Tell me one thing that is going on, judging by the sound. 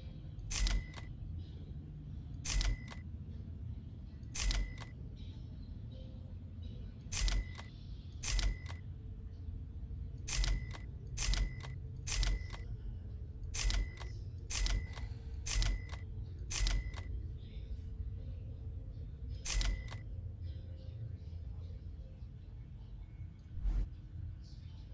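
A short cash-register chime rings again and again as items are sold.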